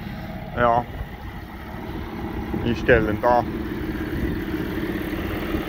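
A tractor engine rumbles steadily nearby.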